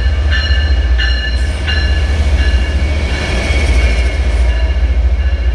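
A locomotive engine drones as it passes.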